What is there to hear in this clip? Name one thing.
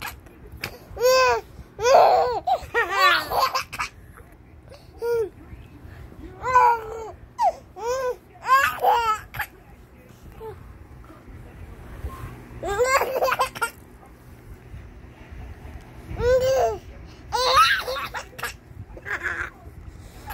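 A baby squeals and giggles up close.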